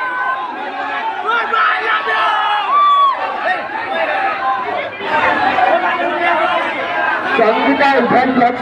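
A song with a singing voice plays loudly through a loudspeaker.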